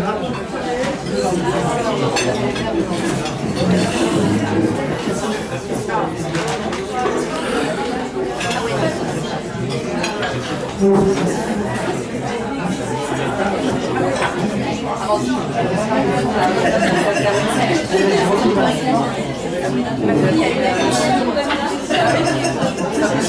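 A woman speaks with animation into a microphone, heard through a loudspeaker in a room.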